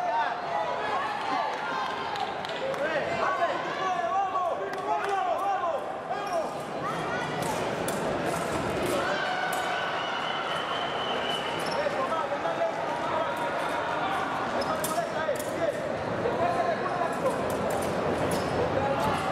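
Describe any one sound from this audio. Fencers' feet tap and shuffle quickly on a hard floor.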